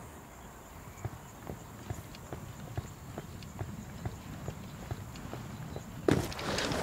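Footsteps tread steadily on grass and rock.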